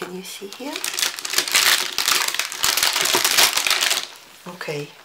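Plastic film crinkles and rustles under a hand.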